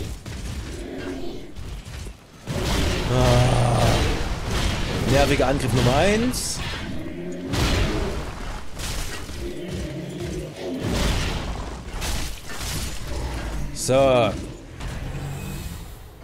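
Swords clang and heavy blows thud in a fierce fight.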